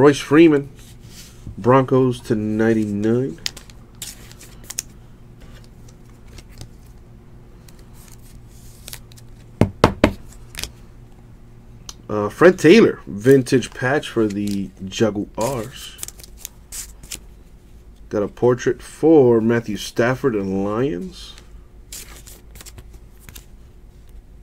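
Trading cards rustle and click softly as hands handle them.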